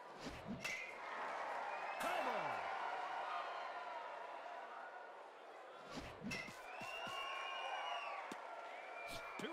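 A large crowd cheers and murmurs steadily.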